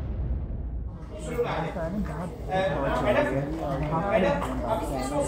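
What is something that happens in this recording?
Children and women chatter together in a large echoing hall.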